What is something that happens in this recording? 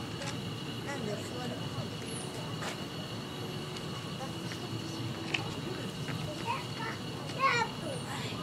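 Leafy branches rustle and creak as monkeys climb through a tree.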